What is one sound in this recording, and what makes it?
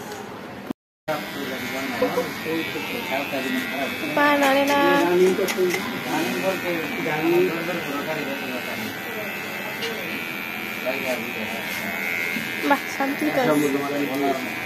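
An electric hair clipper buzzes steadily close by.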